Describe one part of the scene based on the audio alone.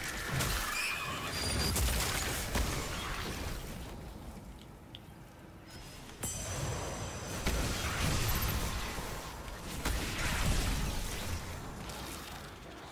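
Blasts and crackling energy bursts from a video game rumble loudly.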